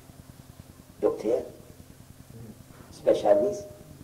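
An elderly man speaks with animation into a microphone, in short bursts.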